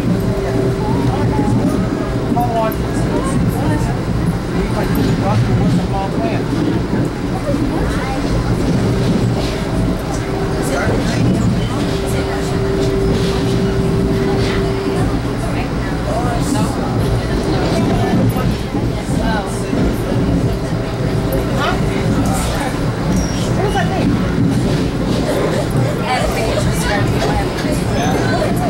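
A train rumbles and rattles steadily along the tracks.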